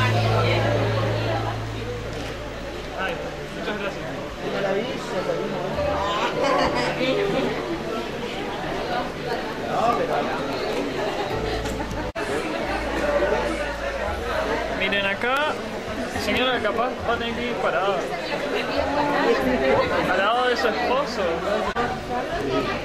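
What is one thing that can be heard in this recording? A crowd of men and women chatter nearby in a busy room.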